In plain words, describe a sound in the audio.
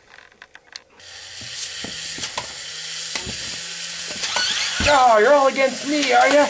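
A small toy robot's motor whirs as it walks.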